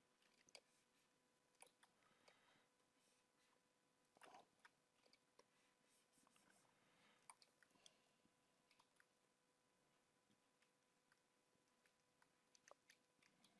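A man talks quietly and casually close to a microphone.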